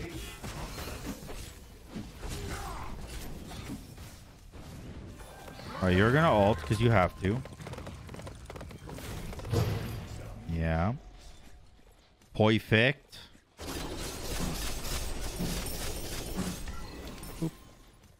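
Game sound effects whoosh and clash.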